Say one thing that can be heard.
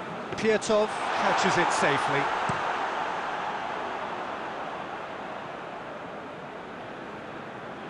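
A stadium crowd roars loudly and slowly dies down.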